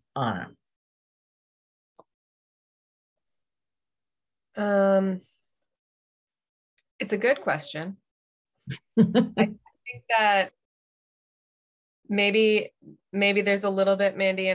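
A woman speaks with animation over an online call, in short bursts with pauses.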